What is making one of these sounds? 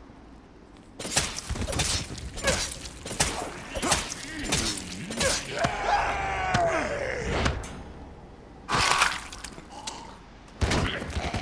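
A zombie growls and moans hoarsely.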